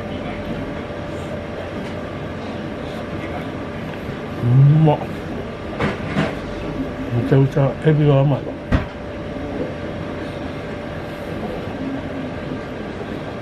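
A man chews food with his mouth close to a microphone.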